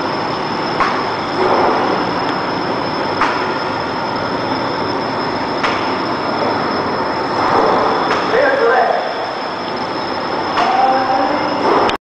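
A laminating machine hums and whirs steadily.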